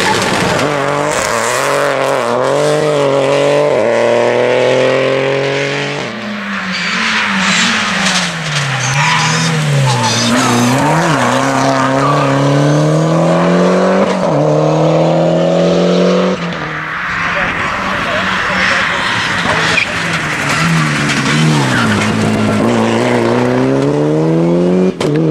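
Rally car engines roar loudly past at close range, revving up and down through the gears.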